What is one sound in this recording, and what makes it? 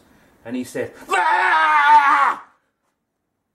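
An older man laughs loudly.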